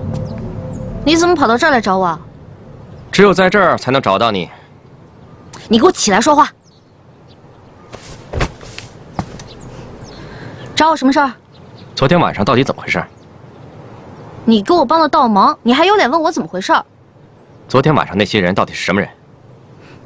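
A young woman speaks in a firm, questioning voice close by.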